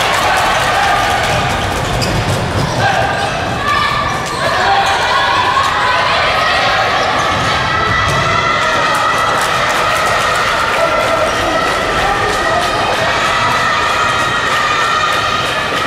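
A crowd of young spectators chants and cheers loudly in a large echoing hall.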